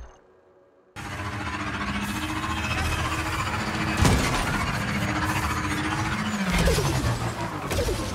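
A hover bike engine hums and whooshes.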